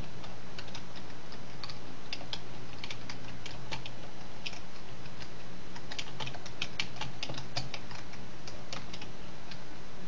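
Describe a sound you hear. Keys clack rapidly on a keyboard.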